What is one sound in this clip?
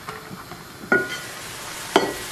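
A metal pot lid clanks as it is lifted.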